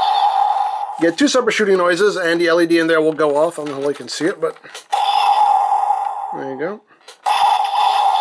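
Plastic parts of a toy click as they are moved by hand.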